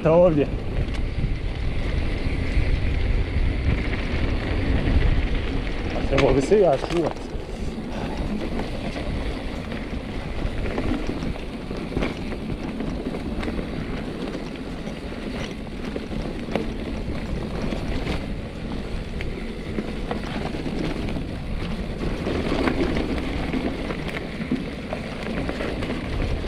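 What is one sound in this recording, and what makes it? Bicycle tyres crunch and rattle over a dirt trail.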